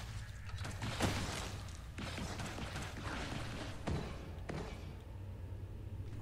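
A game's laser gun fires in sharp zapping blasts.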